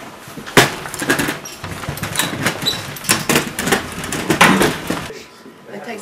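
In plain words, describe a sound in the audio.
Wheelchair wheels roll over a wooden floor.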